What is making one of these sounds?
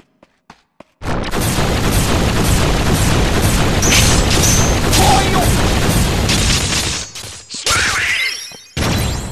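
A magic energy blast roars loudly and steadily.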